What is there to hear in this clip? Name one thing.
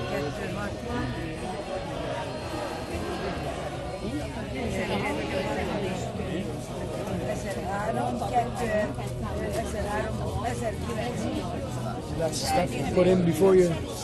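Several voices chatter close by.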